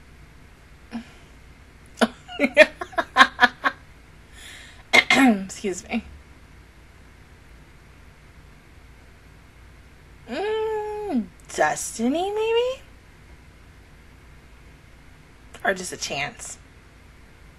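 A young woman speaks close into a microphone in short bursts with pauses.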